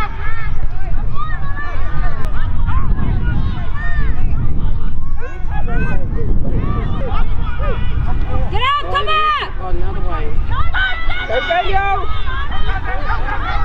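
Boys shout and call out to each other outdoors.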